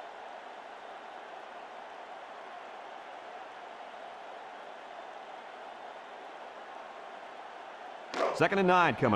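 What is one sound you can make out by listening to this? A stadium crowd roars in a steady wash of noise.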